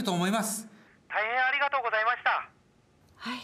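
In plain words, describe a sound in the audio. A middle-aged woman speaks politely into a phone.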